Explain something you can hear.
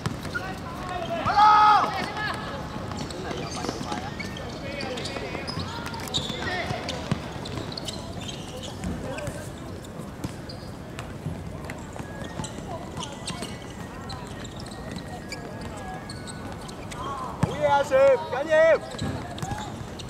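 Young men shout to each other across an outdoor court.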